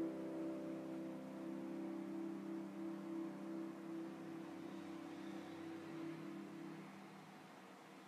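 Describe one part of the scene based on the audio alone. A piano plays soft, slow chords that ring and fade.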